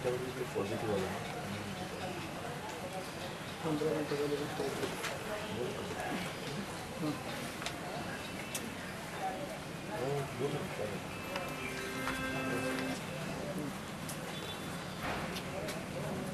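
Papers rustle as pages are turned.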